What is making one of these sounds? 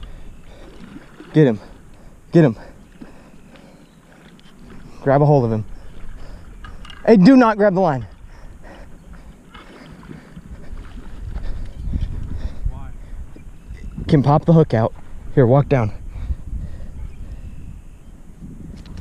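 A fishing reel ticks and whirs as its handle is turned.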